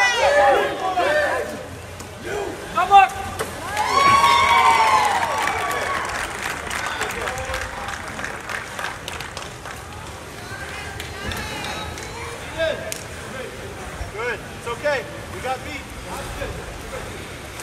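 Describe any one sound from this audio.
Water splashes as swimmers thrash in a pool.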